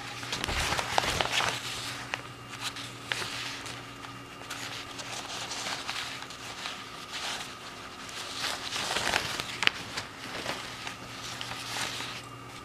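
Paper rustles and crinkles as it is handled close by.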